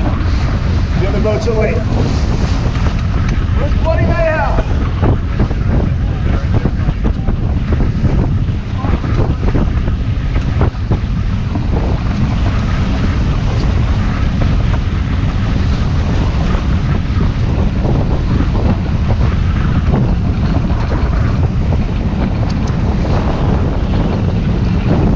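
Water rushes and splashes against a sailboat's hull.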